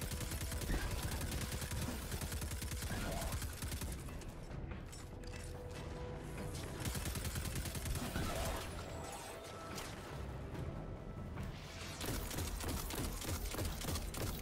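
Explosions burst with loud booms.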